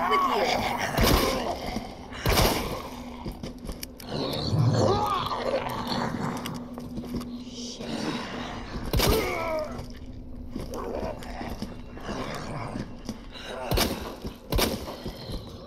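A handgun fires sharp shots.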